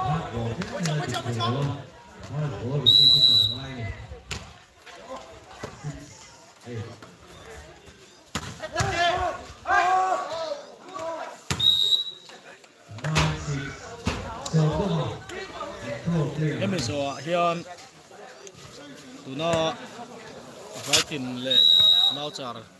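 Young men shout and call out nearby outdoors.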